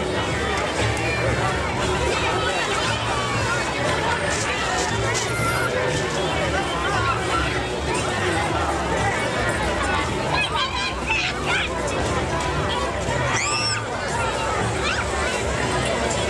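A crowd of adults and children chatters all around outdoors.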